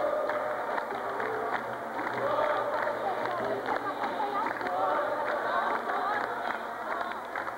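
A crowd of young people sings together in an echoing hall.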